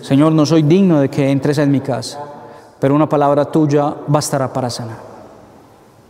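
A man chants in a steady singing voice through a microphone, in an echoing room.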